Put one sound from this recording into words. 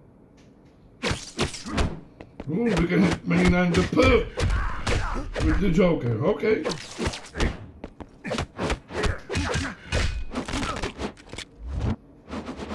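Punches and kicks land with sharp thuds and cracks.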